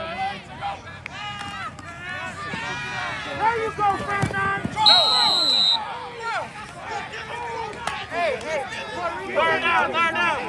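Men shout and cheer from the sideline outdoors.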